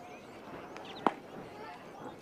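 A baseball smacks sharply into a catcher's glove.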